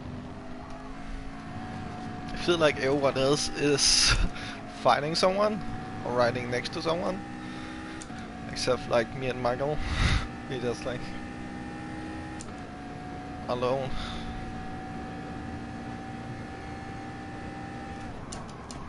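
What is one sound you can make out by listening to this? A racing car engine roars steadily at high speed, its pitch dropping briefly with each gear change.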